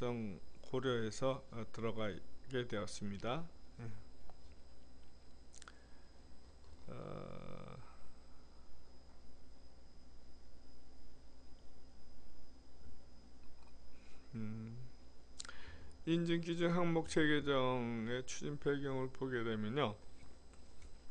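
A middle-aged man speaks calmly into a close microphone, with long pauses.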